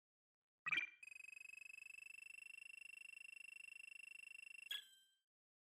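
An electronic tally tone hums steadily while a counter ticks up.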